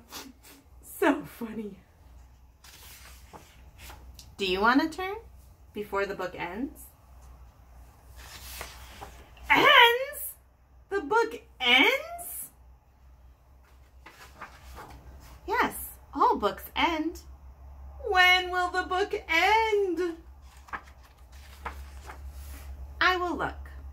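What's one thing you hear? A woman reads aloud close by, with lively, expressive voices.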